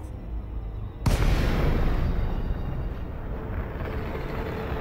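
A spaceship drops out of high speed with a sudden loud whoosh and rumble.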